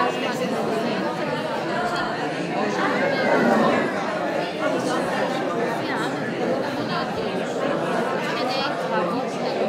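A woman talks cheerfully nearby.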